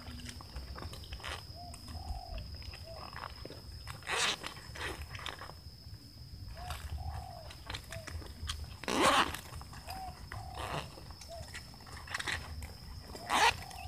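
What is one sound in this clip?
Small metal parts click as an air rifle is handled.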